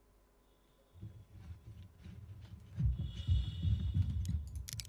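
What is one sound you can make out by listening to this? Footsteps clank up metal stairs.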